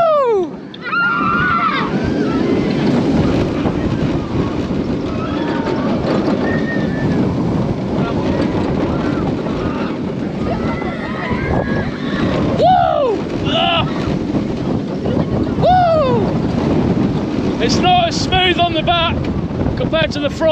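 Riders scream and whoop with excitement.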